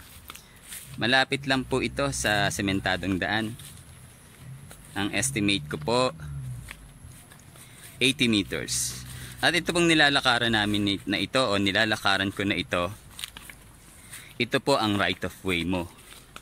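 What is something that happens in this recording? A middle-aged man talks calmly and close to the microphone.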